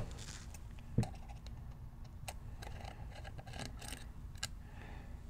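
Small metal parts click and tap as they are handled.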